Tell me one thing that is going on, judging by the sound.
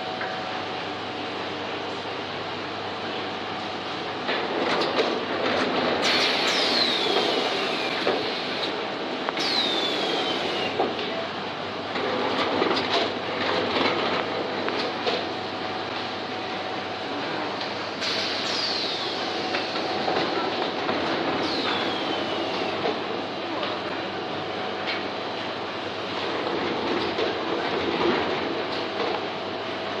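Machine parts knock and click.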